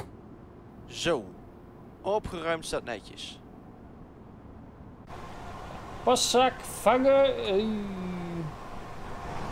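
A man speaks casually into a headset microphone.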